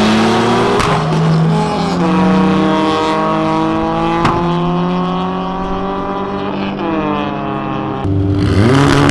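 Car engines roar as the cars speed away, shifting gears.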